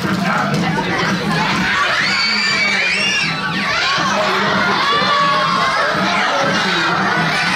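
A large crowd of children chatters and shouts loudly in an echoing hall.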